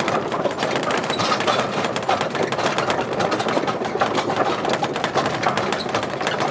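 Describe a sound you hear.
An open road train rattles and clatters along steadily.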